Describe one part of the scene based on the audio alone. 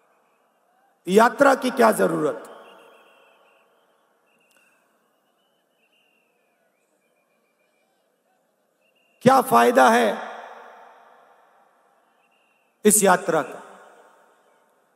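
A middle-aged man speaks forcefully into a microphone, heard through loudspeakers with a long echo outdoors.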